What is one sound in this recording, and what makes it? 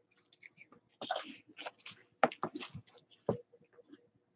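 Foil card packs crinkle as they are shifted.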